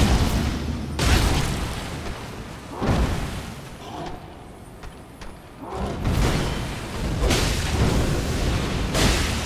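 Sword blows strike with heavy thuds.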